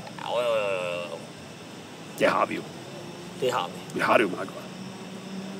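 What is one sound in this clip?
A young man speaks briefly nearby, in a calm voice.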